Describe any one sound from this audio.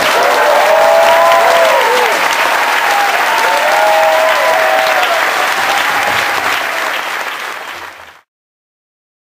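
An audience applauds loudly, then the applause fades away.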